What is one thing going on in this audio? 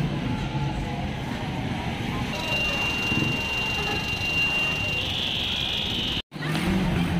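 Voices murmur along a busy street outdoors.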